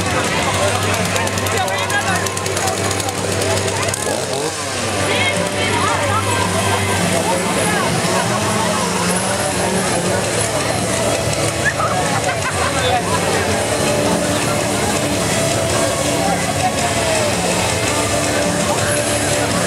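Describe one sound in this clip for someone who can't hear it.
A crowd of onlookers chatters outdoors.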